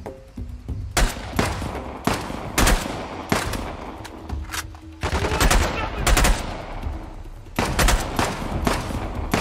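A rifle fires repeated loud shots that echo.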